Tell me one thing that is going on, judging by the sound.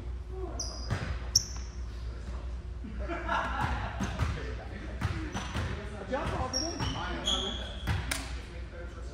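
A volleyball thumps off players' hands.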